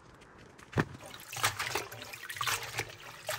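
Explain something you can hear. Water runs and splashes over leaves in a bowl.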